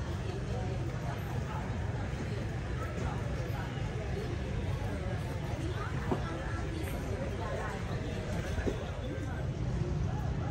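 People chatter faintly in the distance outdoors.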